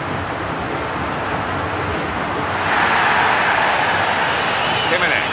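A large stadium crowd roars steadily, swelling louder partway through.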